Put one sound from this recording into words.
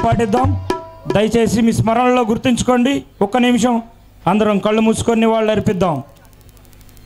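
A man sings loudly through a microphone and loudspeakers.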